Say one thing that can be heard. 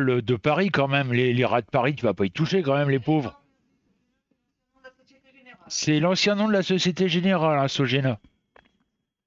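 A middle-aged man talks calmly and close into a headset microphone.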